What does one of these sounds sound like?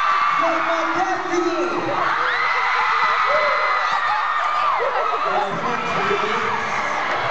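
A large crowd screams and cheers loudly throughout.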